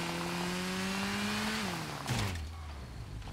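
A motorcycle engine revs and then winds down.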